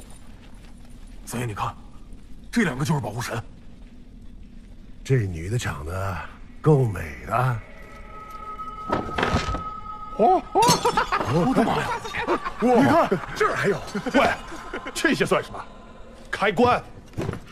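Men talk and laugh with animation.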